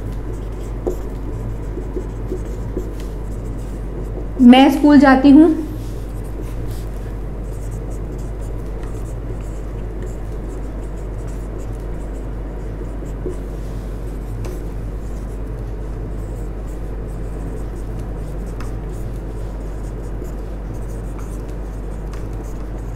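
A marker squeaks softly on a whiteboard.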